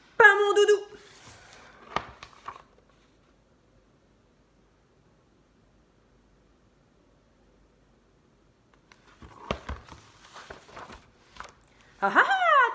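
Paper pages rustle as a book is handled.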